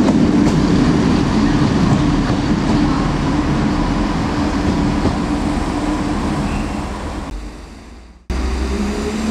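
A diesel train engine hums and rumbles as a train pulls in.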